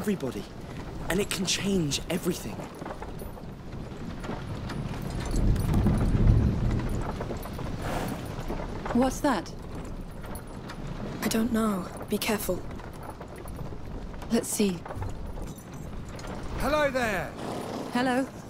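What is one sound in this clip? Wooden cart wheels rumble and rattle over a rocky track.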